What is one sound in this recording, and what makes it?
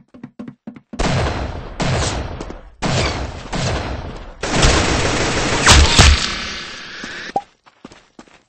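A rifle fires in loud, rapid bursts.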